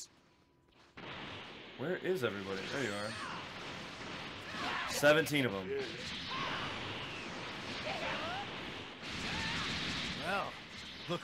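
Energy blasts and hits whoosh and crackle in a video game.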